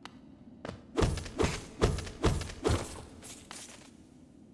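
A blade swishes through the air in sharp slashes.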